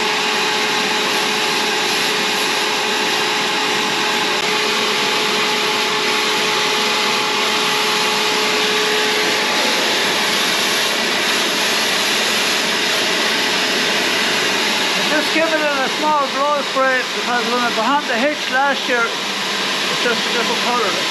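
A pressure washer hisses steadily as water sprays.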